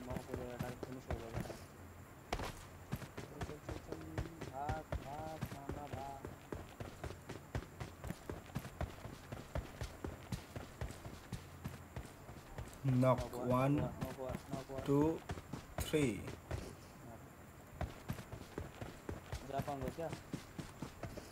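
Footsteps thud quickly and steadily on the ground.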